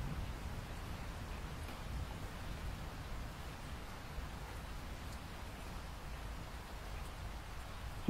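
Rain patters steadily against a window pane.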